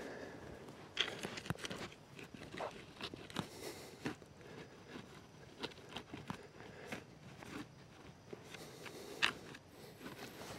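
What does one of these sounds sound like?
A small hand tool scrapes and chops into the soil.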